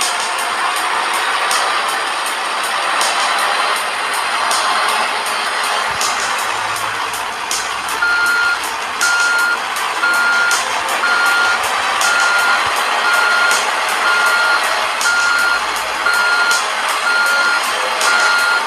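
A heavy road roller's diesel engine rumbles steadily.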